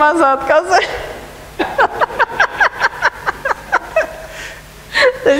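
A woman laughs heartily into a microphone, heard through a loudspeaker.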